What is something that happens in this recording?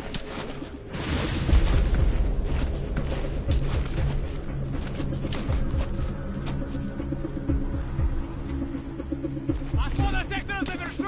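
A person crawls over rough, gritty ground, with clothing and gear rustling.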